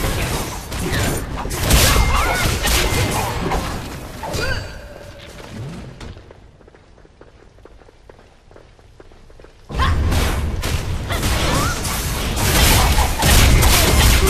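Game combat effects clash and boom loudly.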